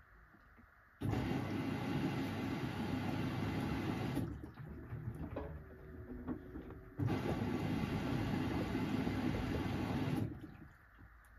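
Water sloshes and rushes loudly inside a washing machine.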